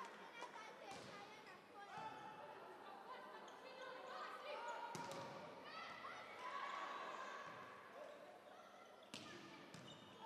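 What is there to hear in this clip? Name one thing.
A volleyball is struck with sharp slaps that echo through a large hall.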